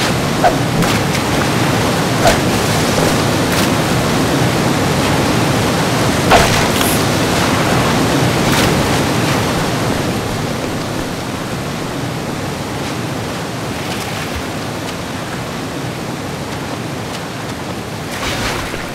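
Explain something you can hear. Footsteps splash and slosh through shallow water.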